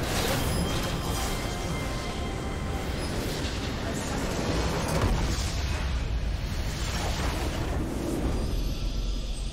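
Spells and weapon blasts crash in a fast, chaotic fight.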